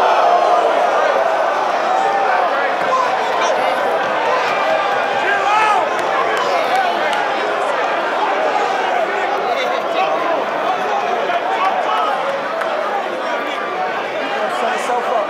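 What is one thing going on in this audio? A large crowd talks and shouts loudly in a big echoing hall.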